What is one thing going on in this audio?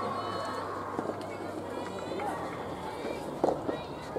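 A tennis ball is struck by a racket with sharp pops.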